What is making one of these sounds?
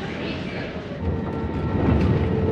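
An airplane's engines rumble steadily inside the cabin.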